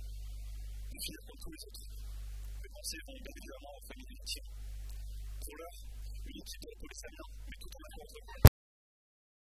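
A young man reads aloud into a microphone.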